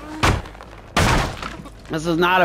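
Wooden boards break with a loud crash.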